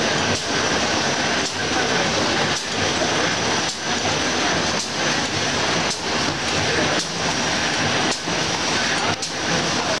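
A machine thumps in a regular rhythm about once a second.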